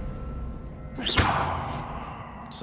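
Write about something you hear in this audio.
A magical blast bursts with a sharp whoosh.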